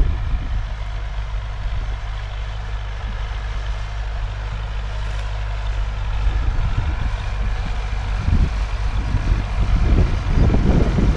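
A tractor engine hums steadily in the distance.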